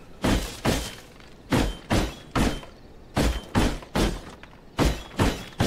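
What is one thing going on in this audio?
Heavy thuds of an axe chopping wood strike in quick pairs.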